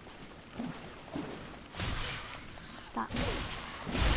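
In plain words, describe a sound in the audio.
A sword swishes through the air.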